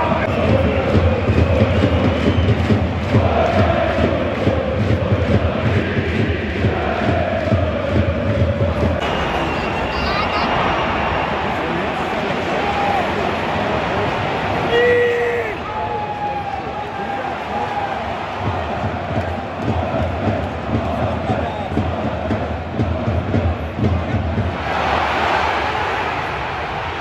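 A large stadium crowd chants and sings loudly, all around in an open arena.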